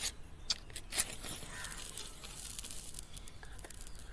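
A small sparkler fizzes and crackles close by.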